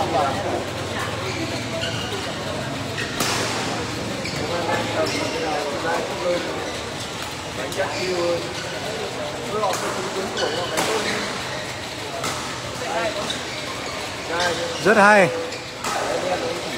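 Men shout and call out during play.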